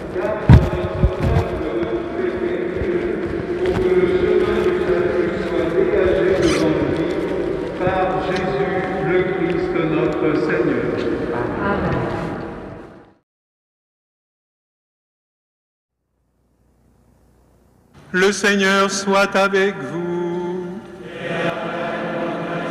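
An elderly man chants through a microphone in a large echoing hall.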